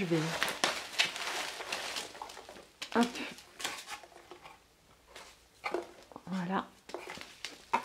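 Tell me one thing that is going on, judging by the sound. A cardboard box scrapes and knocks softly.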